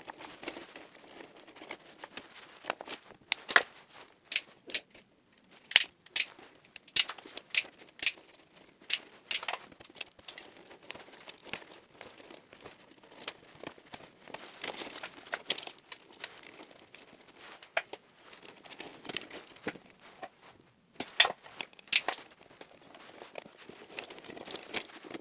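Wires rustle and scrape as hands sort them.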